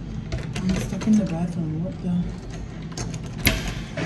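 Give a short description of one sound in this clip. A door knob rattles as a hand turns it.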